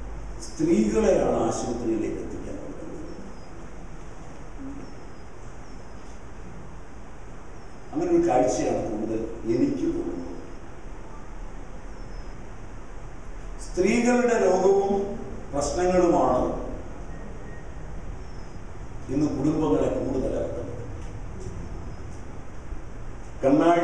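An elderly man speaks forcefully into a microphone, with long pauses.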